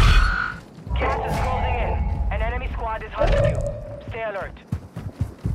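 An electronic warning tone sounds in rising and falling bursts.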